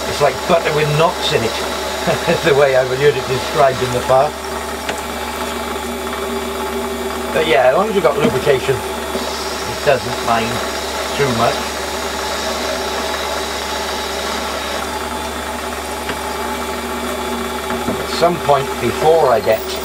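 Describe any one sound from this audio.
A lathe spins with a steady mechanical hum.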